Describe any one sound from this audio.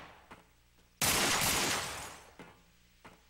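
A glass tank shatters and liquid splashes out.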